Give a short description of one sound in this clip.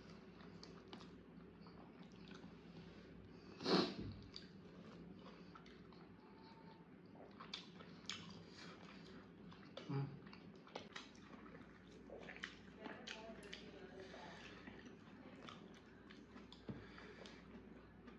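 A young man chews food close to a microphone.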